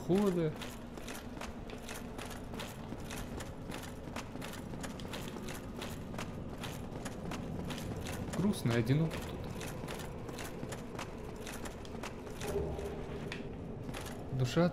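Armored footsteps clank rhythmically on stone.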